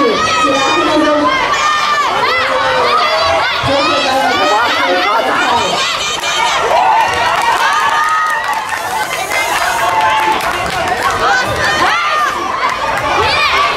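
A crowd of spectators, many of them children, shouts and cheers loudly in a large echoing hall.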